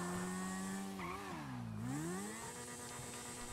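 A motorcycle engine revs down and back up sharply.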